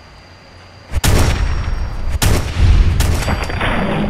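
A rifle fires loud, echoing gunshots.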